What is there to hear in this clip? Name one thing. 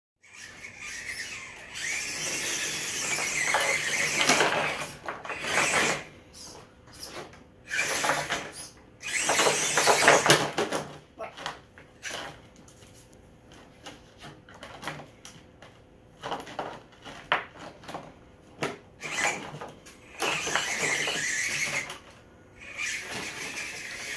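A small electric motor whines as a toy truck crawls over rocks.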